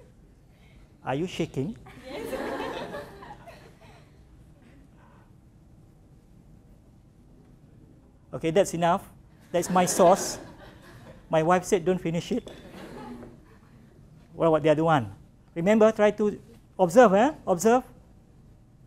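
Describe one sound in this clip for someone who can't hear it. A young woman speaks calmly into a microphone, with pauses.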